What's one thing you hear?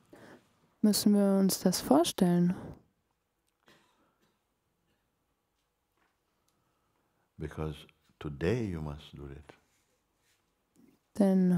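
An elderly man speaks calmly and slowly into a nearby microphone, with long pauses.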